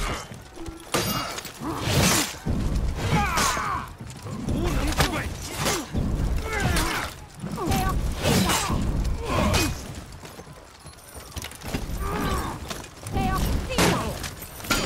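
Men grunt and shout loudly as they fight.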